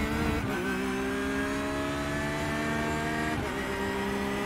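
A racing car engine briefly drops in pitch as it shifts gear.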